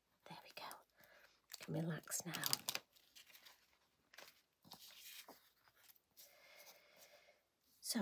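Paper rustles as a sheet is peeled and handled.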